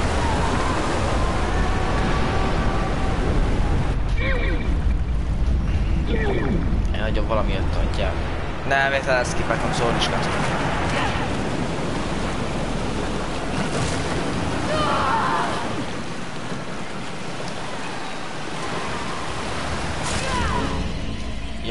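Floodwater rushes and roars through narrow streets.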